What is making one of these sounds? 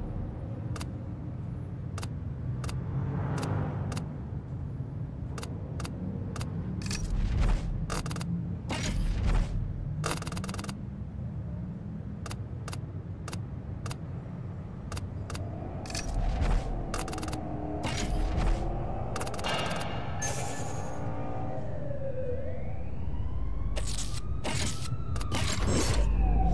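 Game menu selections click sharply, again and again.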